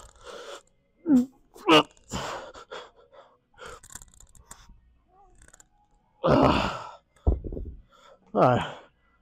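A man grunts loudly with effort.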